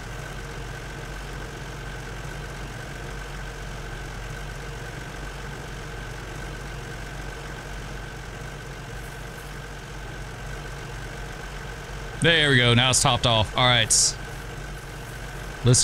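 A fire engine idles with a low, steady rumble.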